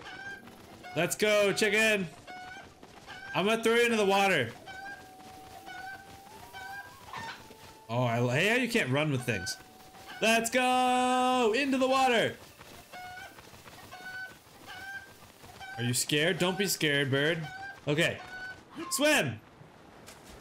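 A young man talks animatedly and close into a microphone.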